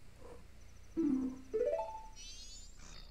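A short chiming jingle plays from a video game menu.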